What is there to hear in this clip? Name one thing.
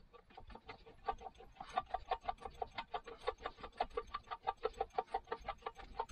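A gear ratchets with quick, regular clicks as it is turned by hand.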